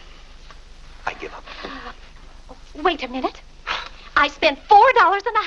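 A woman speaks earnestly and with feeling, close by.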